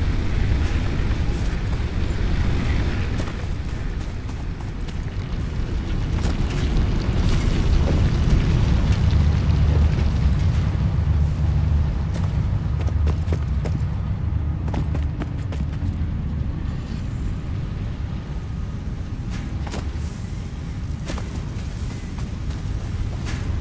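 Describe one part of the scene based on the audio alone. Machines hum and rumble steadily.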